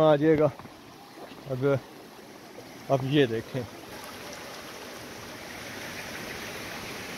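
Shallow water trickles and babbles over stones.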